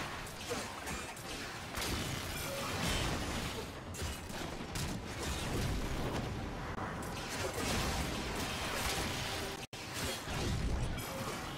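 Energy blasts whoosh and boom.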